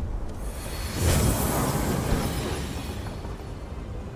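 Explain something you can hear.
A magical spell whooshes and crackles.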